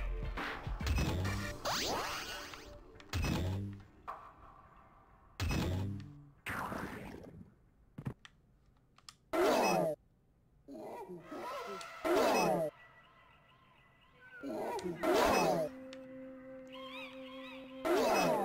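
Video game sound effects chirp, whoosh and bounce in short bursts.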